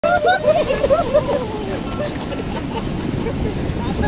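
Waves crash and rush up onto a beach.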